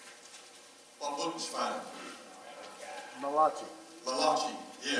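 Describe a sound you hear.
A man preaches with animation through a microphone in an echoing hall.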